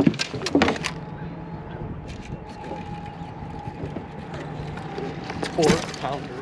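A fishing reel whirs as line is pulled out.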